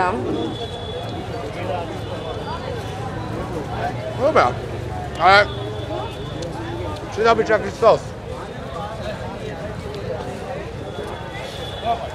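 A busy crowd murmurs outdoors in the background.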